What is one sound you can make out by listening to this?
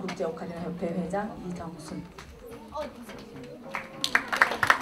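A woman speaks calmly in a hall with a slight echo.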